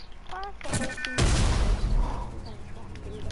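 A loud electric blast crackles and booms.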